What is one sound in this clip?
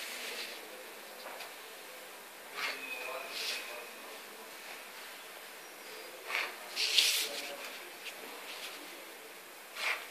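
A plastic ruler taps and slides on paper.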